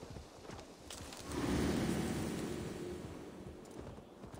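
Leaves rustle as a horse pushes through a bush.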